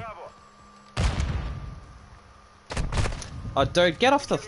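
Gunshots crack loudly.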